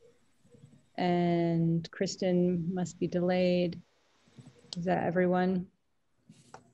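A middle-aged woman speaks calmly over an online call.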